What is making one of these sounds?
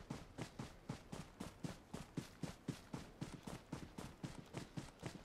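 Quick footsteps thud on grass as a character runs.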